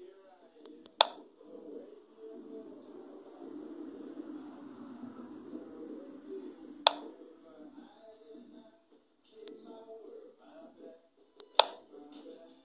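A short, sharp click sounds now and then as a game piece moves.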